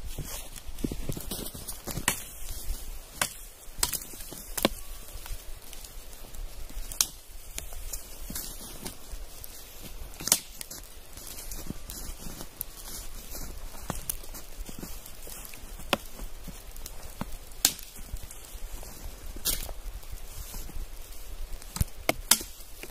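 Branches rustle and crack as a man pulls them.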